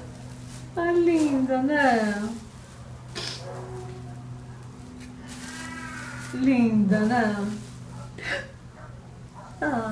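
Paper and fabric rustle as a gift is unwrapped.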